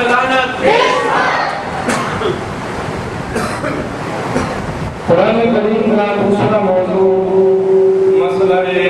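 An elderly man recites in a drawn-out, melodic voice through a microphone, echoing in a large hall.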